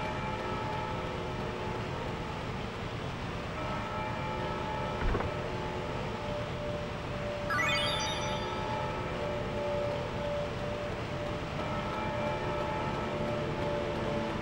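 Waterfalls rush and splash steadily.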